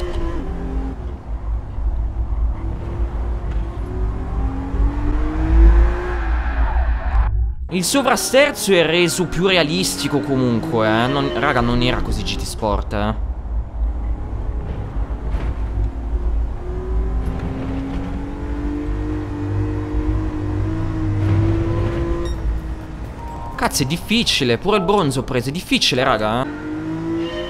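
A car engine revs and whines as it shifts through gears.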